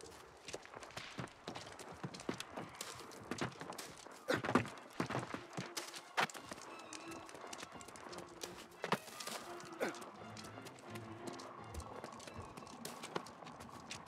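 A figure's hands and feet scrape and thump while climbing rock.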